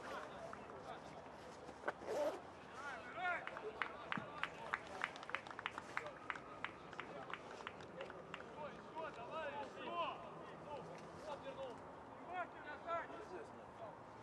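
Football players shout to each other far off across an open pitch.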